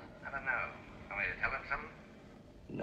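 A man speaks calmly into a telephone.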